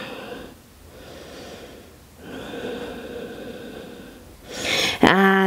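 A woman breathes deeply and slowly.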